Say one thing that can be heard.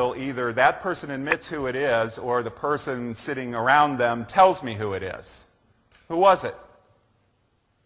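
A man speaks through a microphone to an audience.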